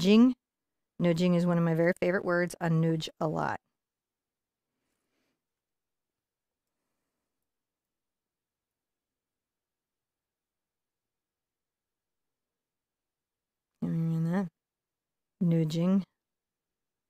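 A woman talks calmly into a microphone, in short bursts.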